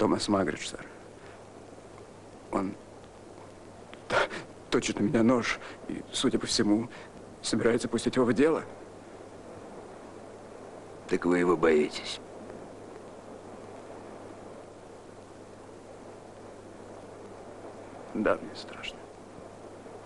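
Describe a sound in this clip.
Another man answers in a low, tense voice up close.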